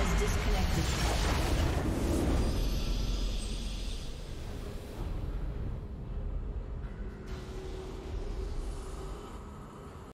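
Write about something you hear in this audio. A loud magical blast booms and slowly fades into a low rumble.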